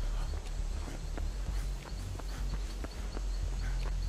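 Footsteps run through dry leaves.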